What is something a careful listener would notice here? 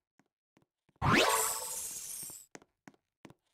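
A game effect whooshes upward with a rising tone, then fades.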